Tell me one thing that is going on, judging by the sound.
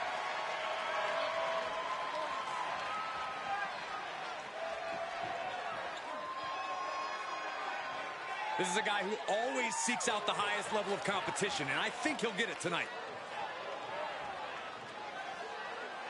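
A large crowd cheers and murmurs in a big arena.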